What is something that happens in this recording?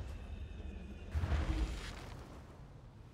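A burst of crackling lightning booms.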